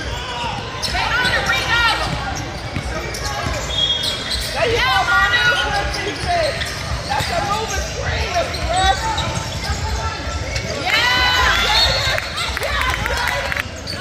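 Voices of spectators and players chatter in the background.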